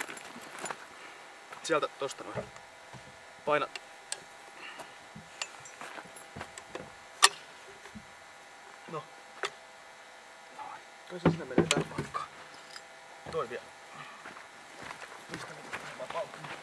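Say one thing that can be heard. Metal parts click and clank as men handle a heavy gun.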